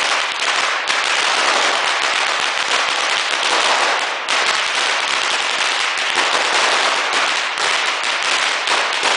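Firecrackers crackle and pop in rapid, continuous bursts close by.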